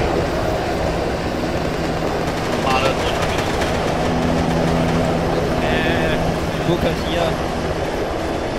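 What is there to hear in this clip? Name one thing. A helicopter's rotor thumps and its engine drones nearby.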